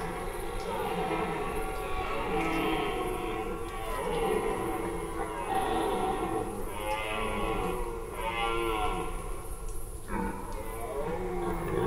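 A red deer stag bellows deeply, again and again.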